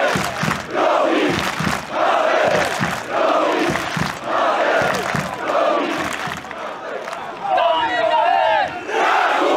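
A large crowd chants loudly in rhythm, with their voices echoing around the stadium.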